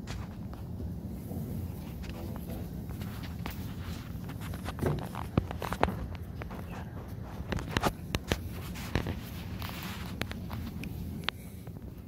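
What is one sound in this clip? A projector fan hums steadily.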